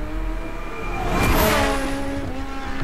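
A car whooshes past close by.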